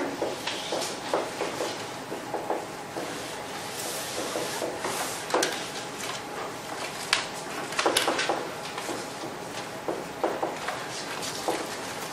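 A man lectures calmly in a slightly echoing room.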